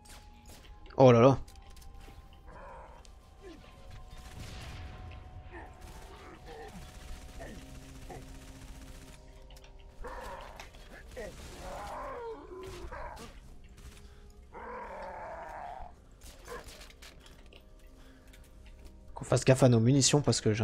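A young man talks through a microphone with animation.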